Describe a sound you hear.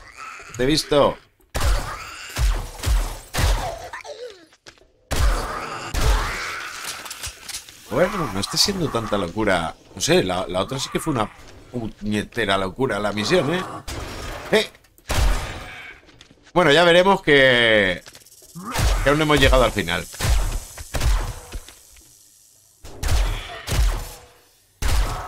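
A zombie growls and snarls.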